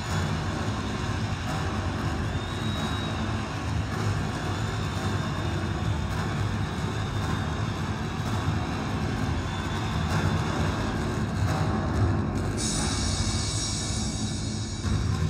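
Music plays loudly through outdoor loudspeakers.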